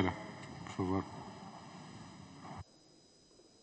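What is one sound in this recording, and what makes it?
A man speaks into a microphone over loudspeakers.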